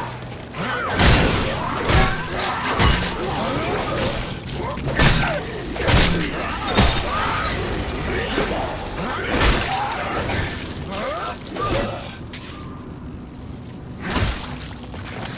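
Heavy blows thud and crunch against a body.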